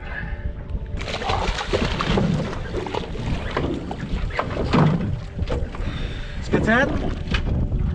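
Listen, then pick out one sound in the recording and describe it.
Water splashes beside a boat.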